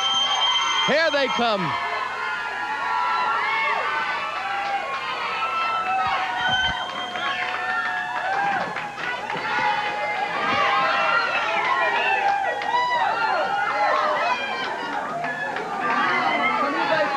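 A crowd cheers and shouts excitedly in an echoing hallway.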